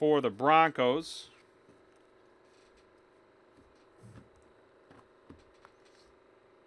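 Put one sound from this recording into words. Trading cards rustle softly as they are handled.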